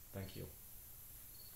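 A man speaks a few words briefly, close by.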